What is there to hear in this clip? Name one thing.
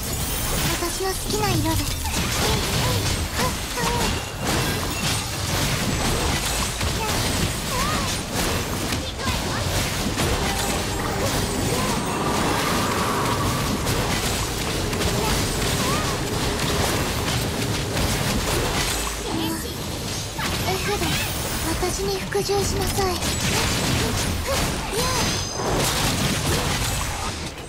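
Game sword slashes and magic blasts crash in rapid bursts.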